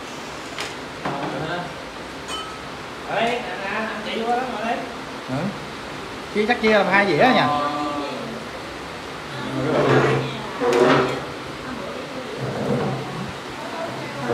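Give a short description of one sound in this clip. Several young men and women talk and laugh nearby.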